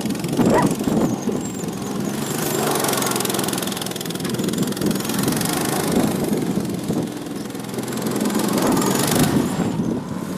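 Kart tyres scrub and skid on rough asphalt.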